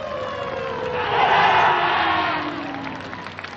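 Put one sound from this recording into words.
A group of young men shout together.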